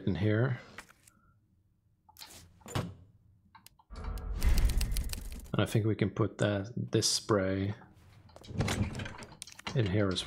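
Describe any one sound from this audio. Menu sounds click and chime.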